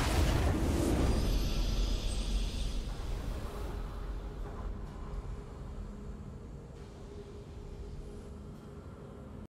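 A triumphant fanfare swells and slowly fades.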